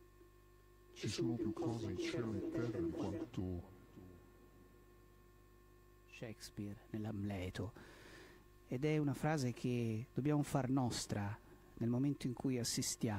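An elderly man speaks into a microphone over loudspeakers, in a reverberant room.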